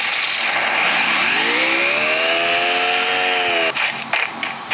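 A car engine revs and rises in pitch.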